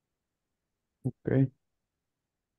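A man speaks a few words briefly over an online call.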